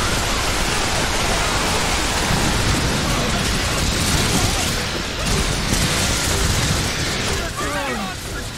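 Heavy gunfire rattles rapidly and without pause.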